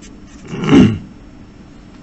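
A felt-tip marker squeaks briefly on paper.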